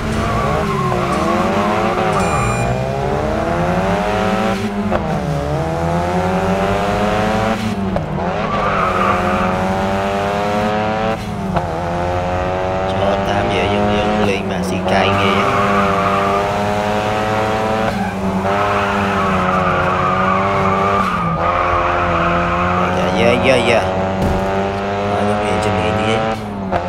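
A car engine revs hard, rising and falling in pitch with each gear change.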